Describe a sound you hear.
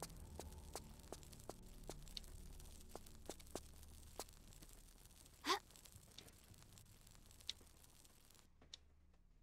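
Footsteps tap lightly on a stone floor.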